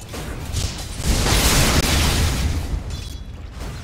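A crackling electric zap of lightning strikes.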